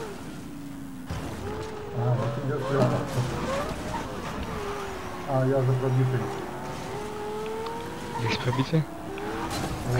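Tyres screech as a car drifts around corners.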